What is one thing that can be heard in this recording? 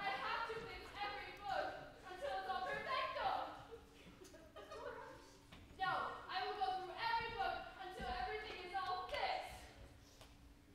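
Young performers speak loudly with animation in a large echoing hall.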